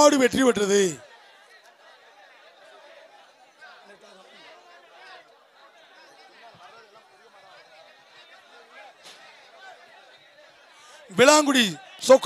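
A crowd murmurs steadily in the distance.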